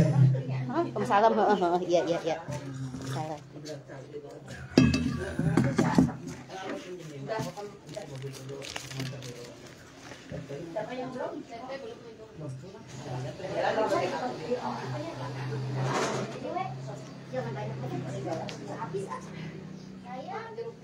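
Several women chat and murmur together nearby.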